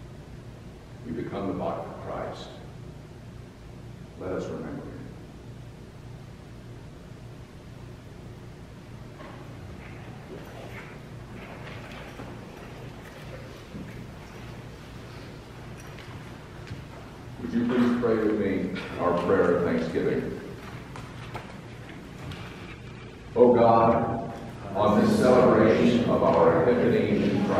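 An elderly man speaks calmly in a large echoing hall.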